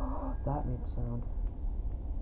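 A young man talks briefly into a close microphone.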